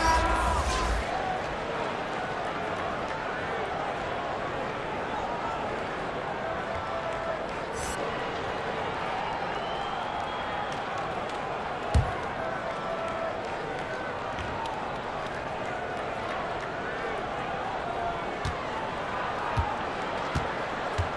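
A large arena crowd murmurs and cheers steadily.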